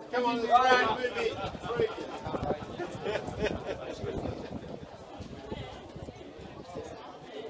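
Several men talk in the background.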